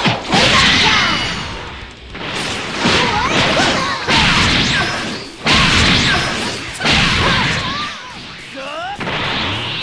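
Energy blasts roar and crackle in loud bursts.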